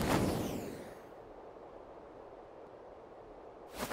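A bright shimmering chime rings out.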